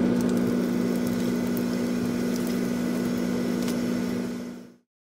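Food sizzles and crackles as it fries in hot oil.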